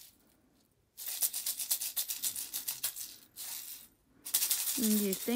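A plastic toy rattles as it is shaken.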